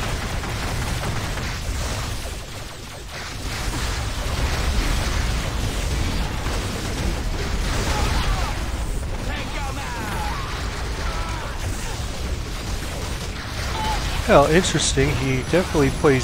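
Energy weapons zap and crackle.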